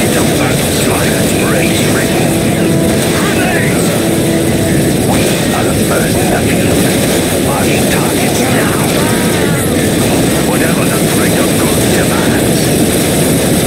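Laser weapons fire in rapid bursts during a loud battle.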